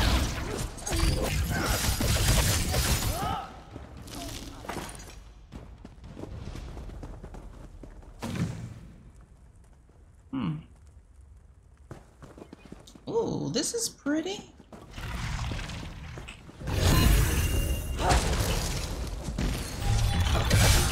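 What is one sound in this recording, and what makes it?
Magic spells crackle and burst loudly.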